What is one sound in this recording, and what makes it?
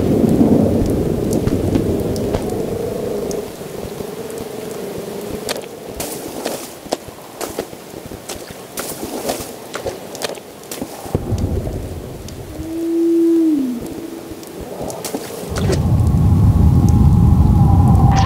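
Footsteps crunch slowly on rough ground.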